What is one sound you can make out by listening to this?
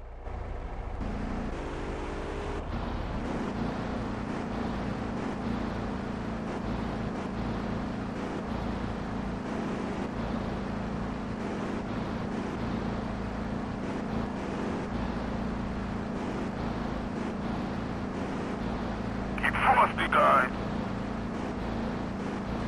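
A car engine hums steadily as it drives along a street.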